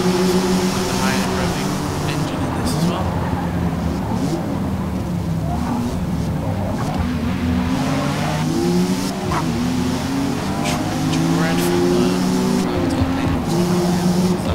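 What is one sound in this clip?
A car engine revs loudly, rising and falling in pitch through gear changes.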